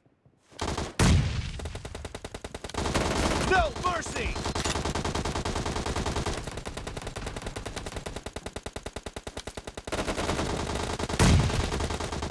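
A sniper rifle fires a loud single shot that echoes.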